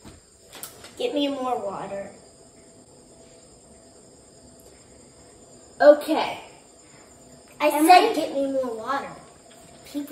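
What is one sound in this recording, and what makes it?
A young girl speaks close by, reading out.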